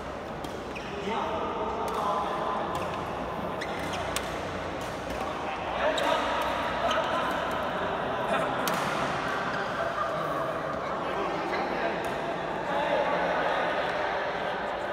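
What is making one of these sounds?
Shuttlecocks are struck with rackets, with sharp pops echoing in a large hall.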